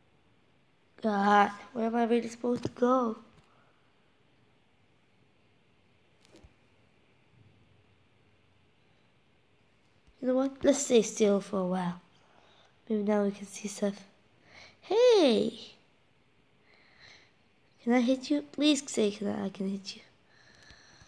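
A boy talks with animation, close to a microphone.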